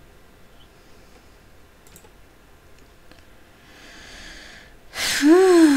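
Soft menu clicks sound as items are selected.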